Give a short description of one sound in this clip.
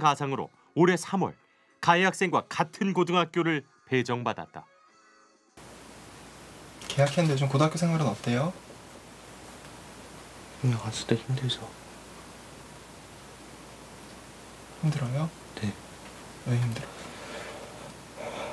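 A young man speaks quietly, close by.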